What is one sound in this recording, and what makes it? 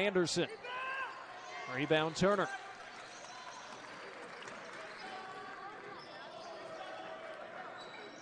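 A small crowd murmurs in a large echoing gym.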